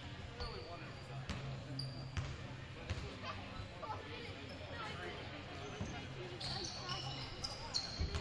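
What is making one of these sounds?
Basketballs bounce on a wooden court in a large echoing gym.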